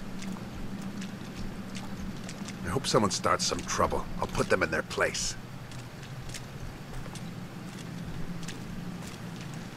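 Footsteps walk slowly over stone.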